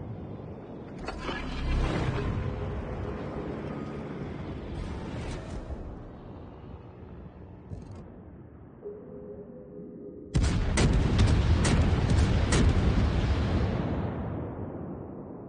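Naval guns fire in heavy booming volleys.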